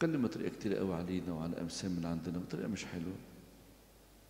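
An elderly man speaks calmly into a microphone, heard through a loudspeaker in an echoing hall.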